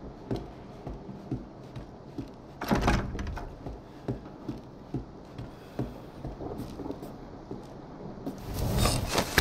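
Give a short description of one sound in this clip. Footsteps creak on wooden floorboards.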